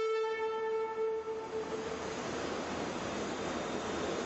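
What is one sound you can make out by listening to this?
A train rolls slowly into a large echoing station.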